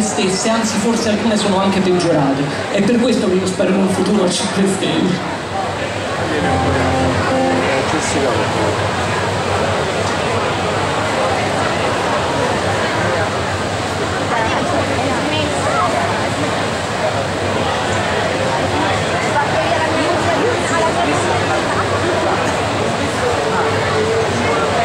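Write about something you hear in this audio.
Electric guitars play loudly in a large hall.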